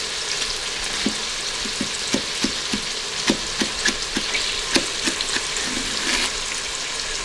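A knife chops through a leek on a wooden board.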